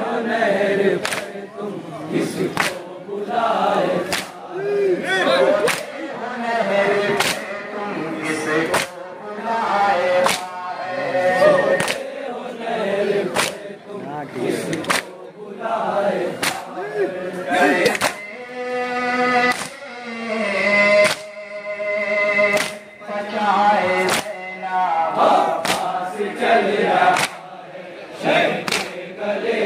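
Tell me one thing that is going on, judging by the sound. A crowd of men chants together outdoors.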